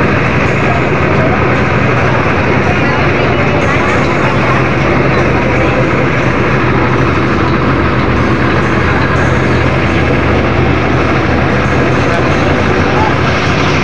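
A fire truck's diesel engine idles with a steady low rumble nearby.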